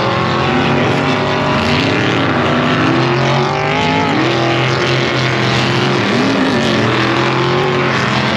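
Small engines whine and rev as off-road cars race around a dirt track.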